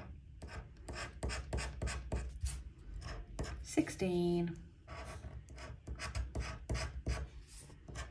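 A metal tool scratches rapidly across a card with a raspy scraping.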